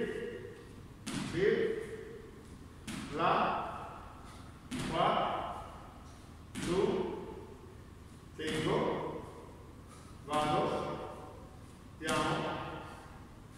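Feet land with heavy thuds on a mat in an echoing room.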